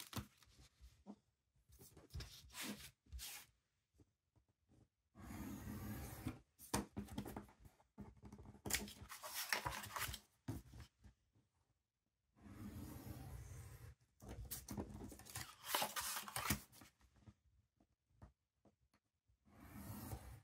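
A craft knife scores along a ruler.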